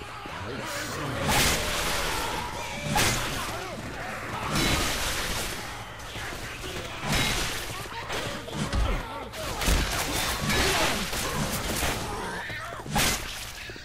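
Zombies snarl and growl.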